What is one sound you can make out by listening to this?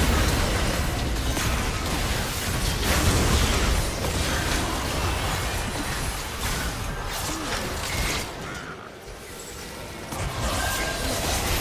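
Spell effects burst and crackle in a fast game battle.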